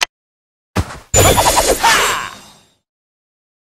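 A sword swooshes through the air.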